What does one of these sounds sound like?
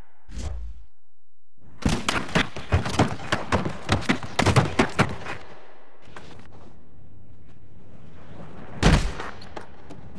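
A skateboarder's body thuds onto the ground.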